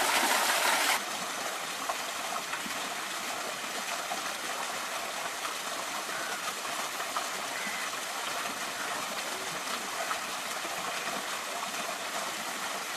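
A small waterfall trickles and splashes from a distance.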